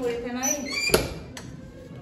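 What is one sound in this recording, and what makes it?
A metal door latch clicks.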